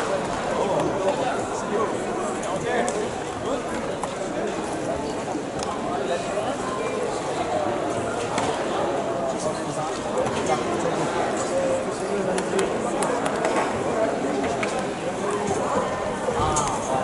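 Many voices chatter and echo through a large hall.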